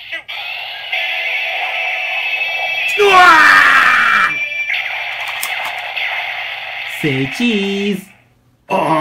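A toy gadget plays loud electronic sound effects.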